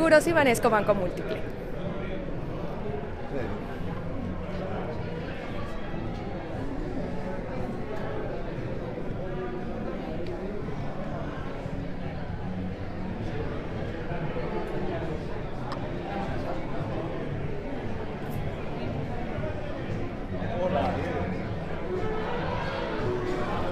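A crowd of people murmurs and chatters in a large room.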